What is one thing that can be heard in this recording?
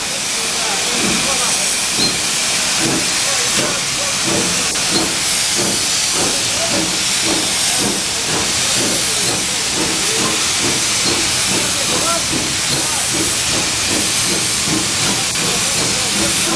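A steam locomotive chuffs in a regular beat as it pulls away.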